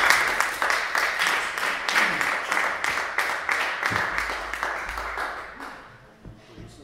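Several acoustic guitars strum a quick, lively rhythm.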